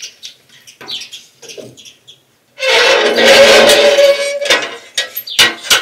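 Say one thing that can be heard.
Firewood knocks and clatters into a wood stove.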